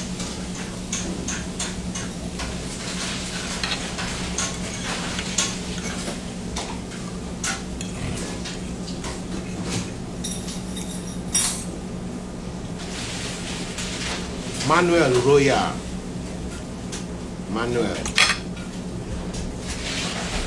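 Cutlery clinks and scrapes against a plate.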